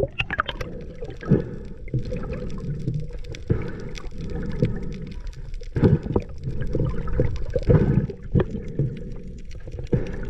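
Water rushes with a low, muffled murmur underwater.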